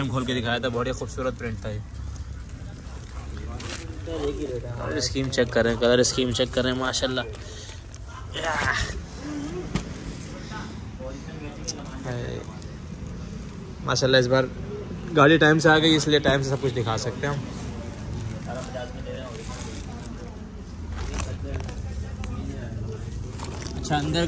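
Plastic bags crinkle and rustle as a hand moves them.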